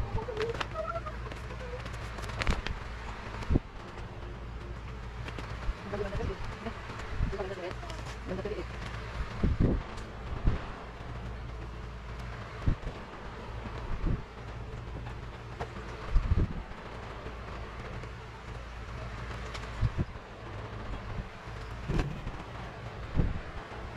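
Vinyl film peels off with a tearing sound.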